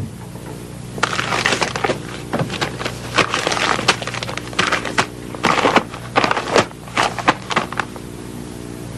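Papers rustle and crinkle as they are shuffled by hand.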